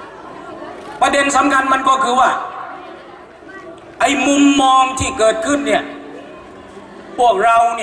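A middle-aged man speaks with animation into a microphone, echoing slightly.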